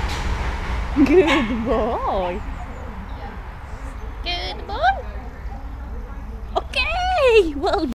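A dog whines and yelps in high, wavering cries.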